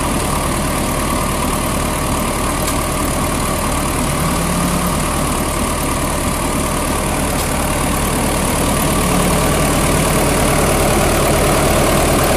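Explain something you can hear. An old diesel engine runs close by with a steady, loud rattling clatter.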